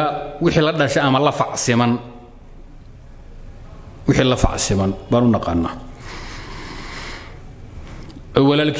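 A man speaks calmly into a nearby microphone, in short phrases with pauses.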